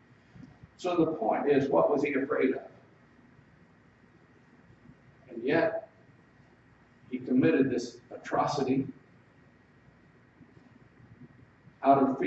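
A middle-aged man speaks with emphasis in short bursts, with pauses between them.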